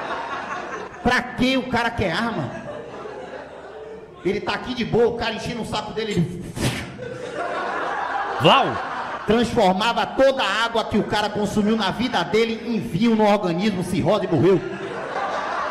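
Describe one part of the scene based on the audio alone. A young man speaks into a microphone with lively comic timing.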